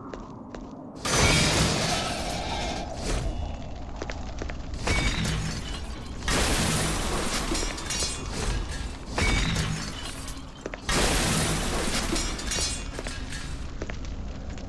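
A sword swings and strikes with loud clashing bursts.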